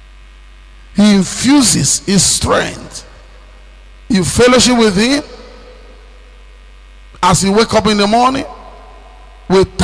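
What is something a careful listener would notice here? A man preaches with animation through a microphone, in bursts with pauses.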